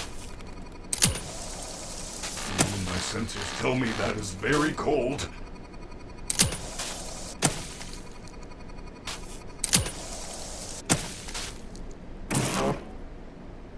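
A spray device hisses in short bursts.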